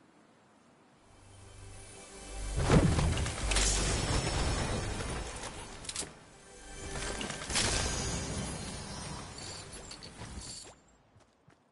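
A treasure chest opens with a bright shimmering chime.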